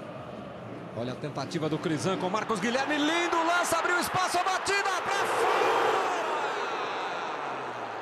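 A stadium crowd erupts into loud cheering.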